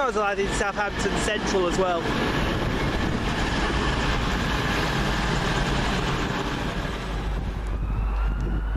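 A diesel multiple-unit train pulls away, its wheels rumbling on the rails.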